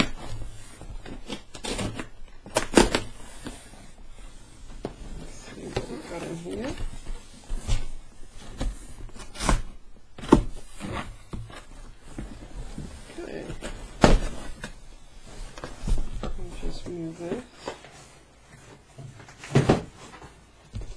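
A cardboard box scrapes and thumps as it is handled and turned over on a table.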